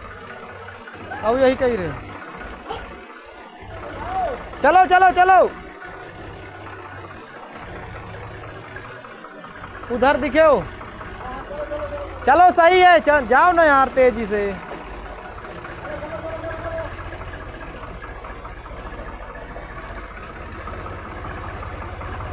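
A tractor engine idles with a low, steady rumble.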